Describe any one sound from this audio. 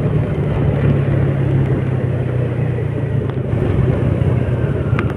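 Wind rushes past while riding outdoors.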